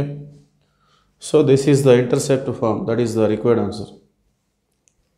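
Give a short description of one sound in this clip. A man speaks calmly and clearly, as if explaining, close by.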